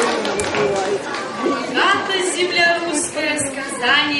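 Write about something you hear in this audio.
A woman speaks through a microphone, heard over loudspeakers in a hall.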